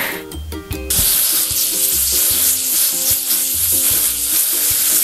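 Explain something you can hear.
A jet of water sprays with a steady hiss.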